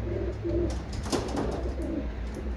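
A homing pigeon flutters its wings.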